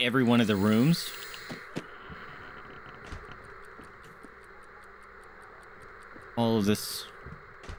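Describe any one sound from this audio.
A young man talks loudly with animation into a close microphone.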